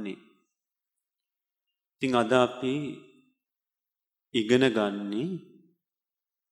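A young man speaks slowly and calmly into a microphone, in short phrases with pauses.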